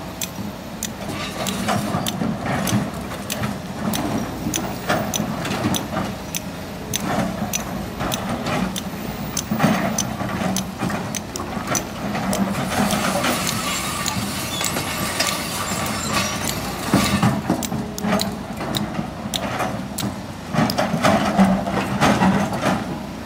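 An excavator bucket scrapes and crunches into loose rock and earth.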